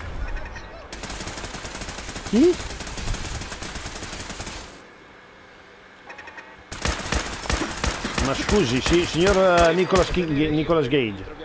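Laser guns fire in rapid crackling bursts.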